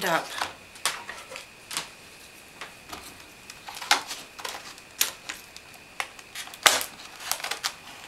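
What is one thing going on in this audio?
Plastic packaging crinkles and clicks as it is handled.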